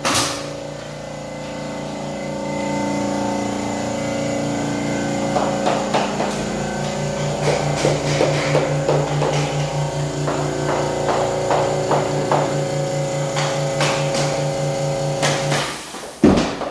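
An air compressor hums and throbs steadily.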